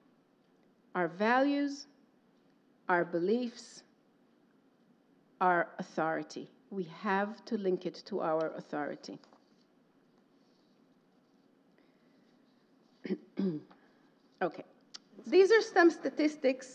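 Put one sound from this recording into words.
A woman speaks calmly through a microphone, in short phrases with pauses.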